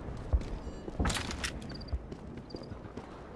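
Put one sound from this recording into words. A gun's metal parts click and rattle as it is handled.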